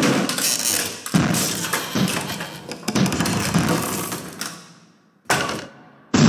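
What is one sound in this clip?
A large metal robot stomps heavily.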